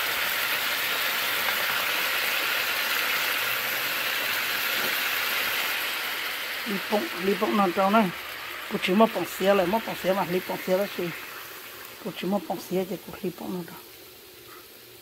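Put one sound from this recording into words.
Food sizzles steadily in a hot pan, slowly fading.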